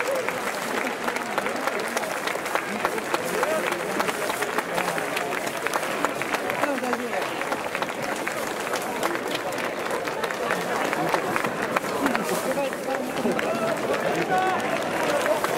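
Spectators clap their hands in a large open stadium.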